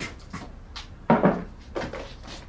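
A plastic basin clunks onto a table.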